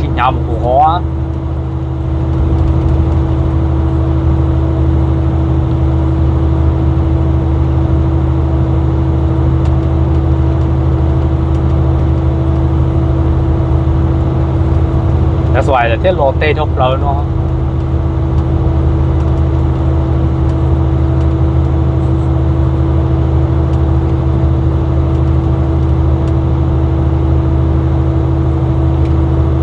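A truck's engine drones steadily inside the cab.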